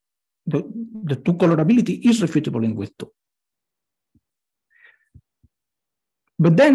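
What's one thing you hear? A man speaks calmly through a microphone, as if on an online call.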